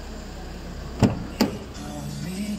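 A van door latch clicks sharply.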